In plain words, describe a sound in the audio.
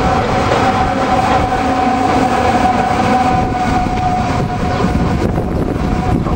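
An electric train rushes past close by with a loud, steady motor whine.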